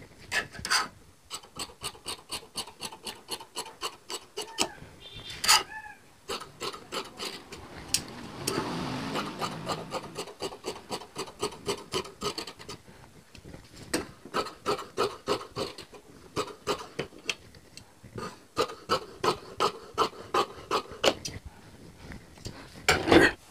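Scissors snip through cloth in quick, steady strokes.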